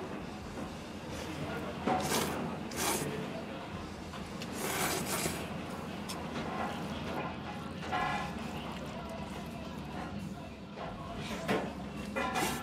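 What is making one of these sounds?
A man slurps noodles loudly.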